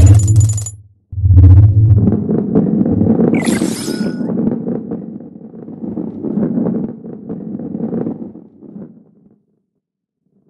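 A heavy ball rolls along a track with a low rumble.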